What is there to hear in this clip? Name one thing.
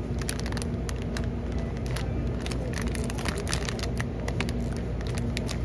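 Plastic food packets crinkle and rustle as a hand handles them.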